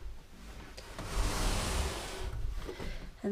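A door swings open with a soft brush.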